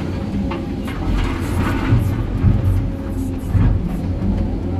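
Rocks and dirt tumble into a truck bed with loud thuds.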